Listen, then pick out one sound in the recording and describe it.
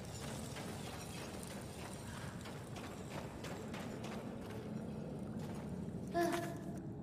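Footsteps crunch on rocky ground at a steady walking pace.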